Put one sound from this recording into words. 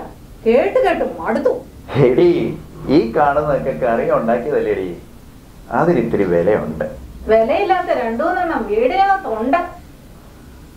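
A middle-aged woman speaks calmly up close.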